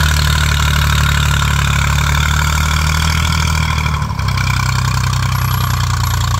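A tractor engine chugs loudly and steadily, dropping in pitch partway through.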